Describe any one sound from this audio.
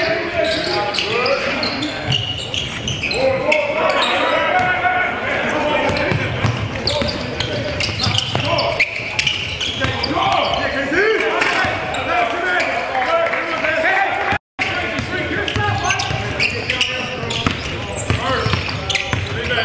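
Men call out and talk loudly in a large echoing gym.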